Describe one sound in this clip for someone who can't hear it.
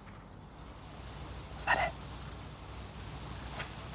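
A pen scratches on paper close by.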